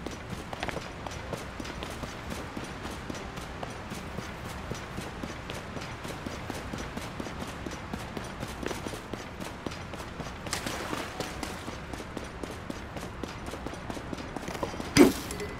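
Footsteps patter quickly over rough ground.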